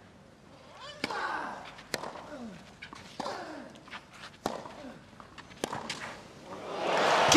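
A tennis ball is struck hard with a racket.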